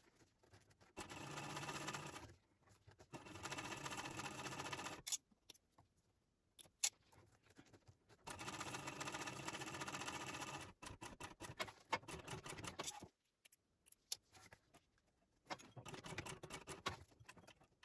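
A sewing machine stitches rapidly in several short bursts, stopping and starting.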